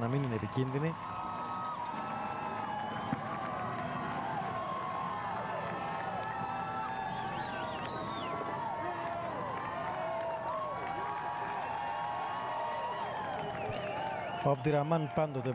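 A crowd of spectators cheers and shouts along the road.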